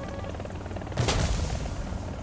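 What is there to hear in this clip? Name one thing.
Rockets launch from a helicopter with a loud whoosh.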